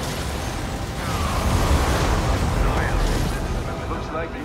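Explosions boom and rumble in a loud battle.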